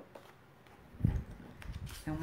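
A stiff card is set down on a table with a soft thud.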